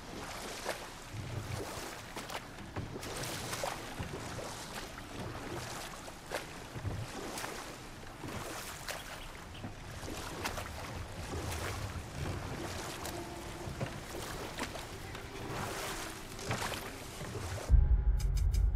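Water ripples and laps around a moving boat.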